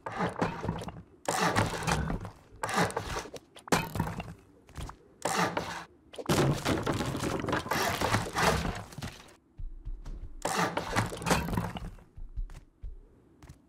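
A heavy hammer strikes and stone crunches into place in loud bursts.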